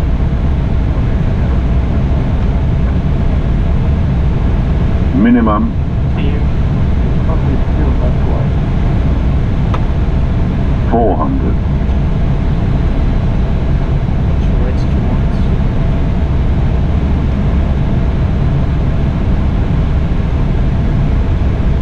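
A steady low roar of engines and rushing air fills an aircraft cockpit.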